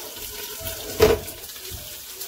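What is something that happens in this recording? A metal-rimmed glass lid clanks as it is lifted off a pan.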